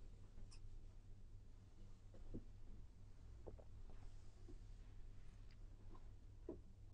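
An elderly man speaks calmly and slowly into a close microphone.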